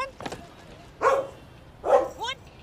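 A dog barks.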